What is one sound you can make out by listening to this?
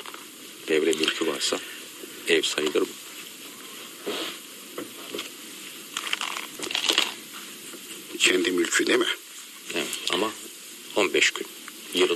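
A middle-aged man speaks calmly into a microphone, as on a radio broadcast.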